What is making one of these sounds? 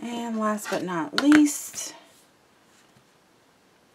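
A plastic ruler taps down onto paper.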